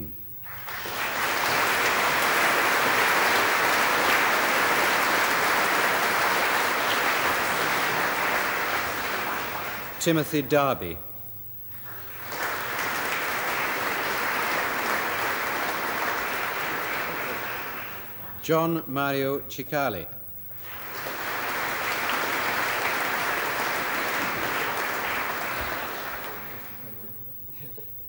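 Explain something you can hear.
An audience applauds in a large hall, in bursts that swell and fade.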